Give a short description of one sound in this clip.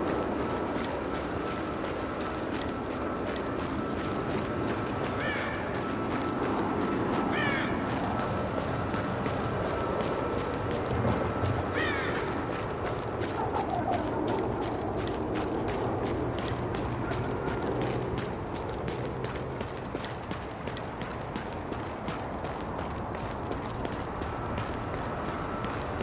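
Footsteps crunch through snow at a steady jogging pace.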